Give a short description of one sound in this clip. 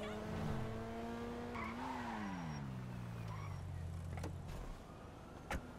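A car engine hums and then winds down as the car slows to a stop.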